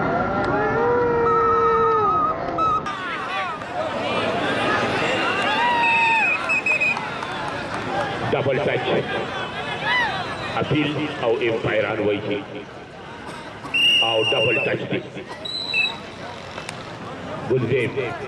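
Men in a crowd cheer and shout.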